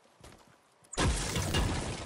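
A pickaxe strikes a brick wall with a loud crack.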